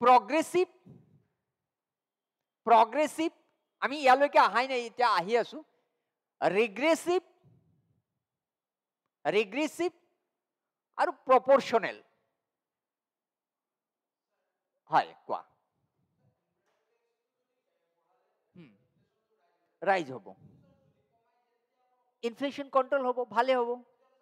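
A man lectures calmly through a close microphone, in short phrases with pauses.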